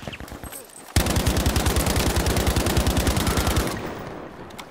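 A machine gun fires rapid bursts at close range.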